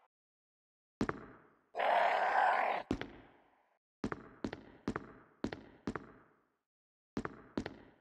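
Footsteps clack on a hard tiled floor in an echoing hallway.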